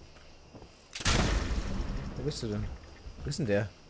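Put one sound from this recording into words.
A weapon fires with a loud electric blast that crackles and fades.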